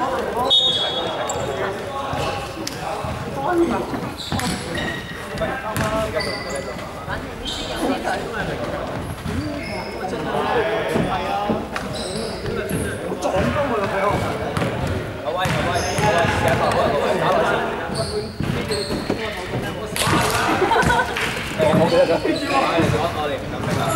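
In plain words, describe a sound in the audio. Young men talk and call out across a large echoing hall.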